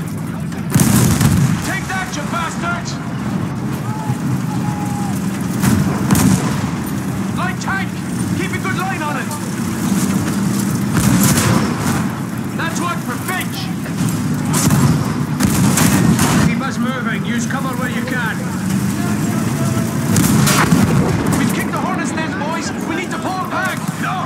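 A tank engine rumbles and its tracks clatter steadily.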